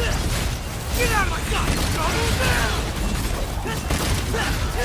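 Monsters screech and shriek.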